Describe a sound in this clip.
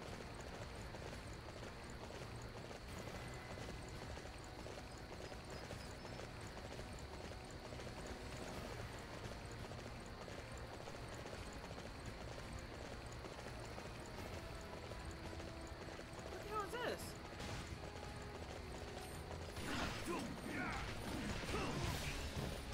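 Hooves thud as a horse rides over soft ground.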